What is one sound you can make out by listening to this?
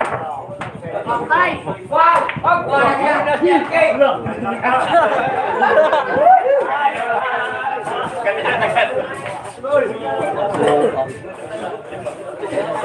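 Several men talk and chatter nearby, growing livelier.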